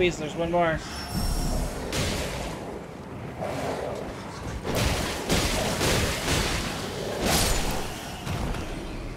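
Sword blows slash and strike in a fight.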